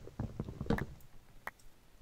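Wooden blocks break with quick knocking thuds.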